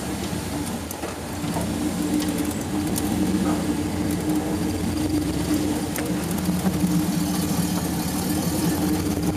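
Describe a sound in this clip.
Tyres grind and crunch over rock.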